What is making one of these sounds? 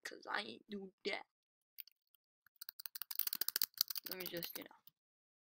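A boy talks with animation, close to a microphone.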